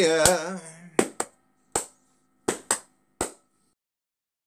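A man claps his hands in short, uneven bursts.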